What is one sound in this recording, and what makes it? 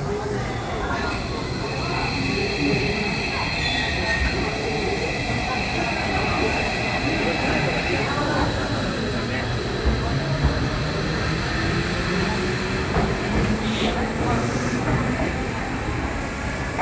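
A train pulls out and rumbles past steadily, gathering speed.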